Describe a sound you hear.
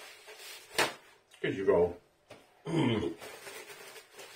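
Paper crinkles in a man's hands.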